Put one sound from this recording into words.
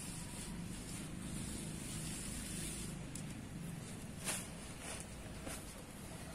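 A plastic tarp rustles and crinkles as it is handled.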